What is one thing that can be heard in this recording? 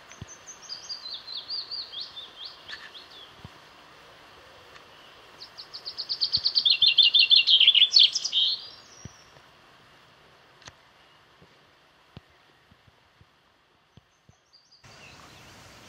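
A beaver swims through water, dragging a leafy branch.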